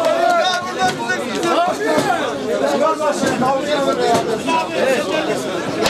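A large crowd of young men chants and sings loudly outdoors.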